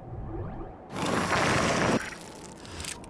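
A loud burst whooshes as something is launched into the air.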